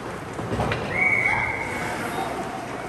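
A referee's whistle blows a short shrill blast.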